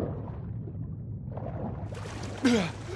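Water rumbles dully underwater.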